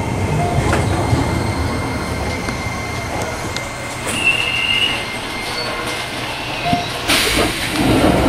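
A train rumbles and hums as it slowly pulls away.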